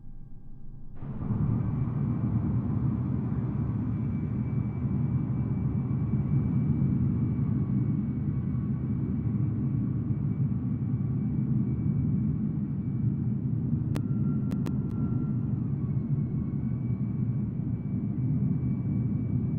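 A jet engine roars and whines loudly close by.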